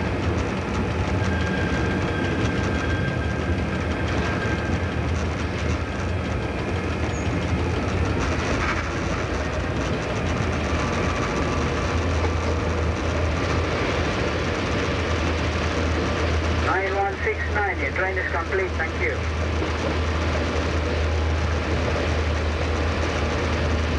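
A train rumbles steadily along the tracks, wheels clattering on the rails.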